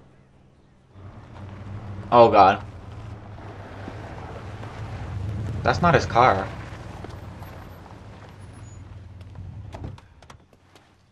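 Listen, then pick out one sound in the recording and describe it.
A car engine hums as a car pulls up and idles close by.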